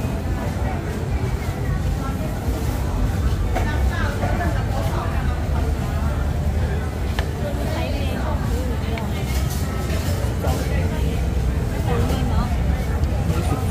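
Chopsticks clink against a bowl.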